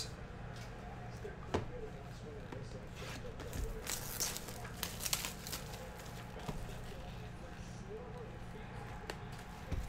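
Cardboard boxes slide and tap as they are handled.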